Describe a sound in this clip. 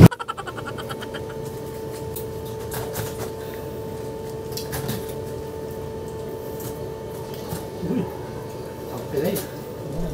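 A spoon scrapes against a plate.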